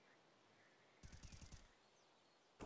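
Footsteps patter softly on stone.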